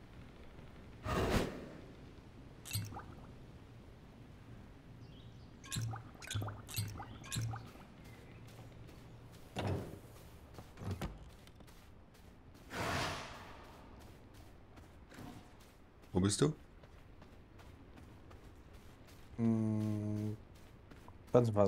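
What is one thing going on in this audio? Short whooshing and thudding effects sound at intervals.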